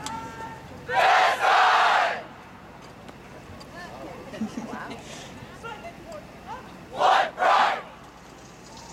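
A nearby crowd cheers loudly in short bursts.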